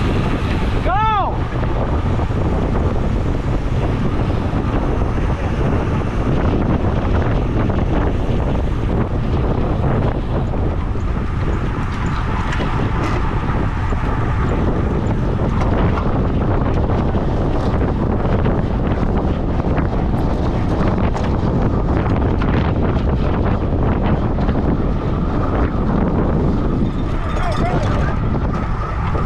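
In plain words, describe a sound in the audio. Bicycle chains and gears click and whir.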